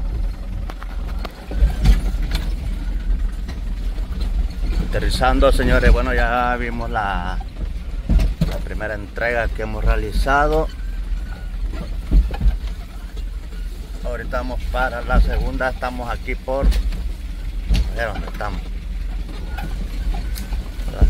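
A vehicle jolts and rattles over a bumpy dirt track.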